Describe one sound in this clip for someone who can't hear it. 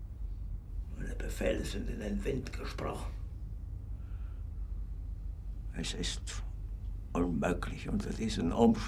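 An older man speaks in a low, tense voice, close by.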